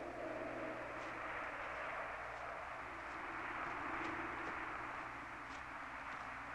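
A man's footsteps crunch on a dirt path.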